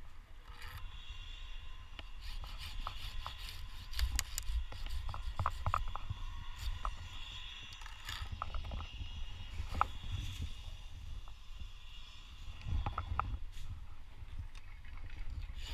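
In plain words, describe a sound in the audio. Twigs and branches rustle and snap.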